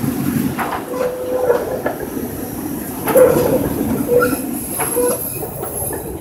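Tram wheels squeal on a curve.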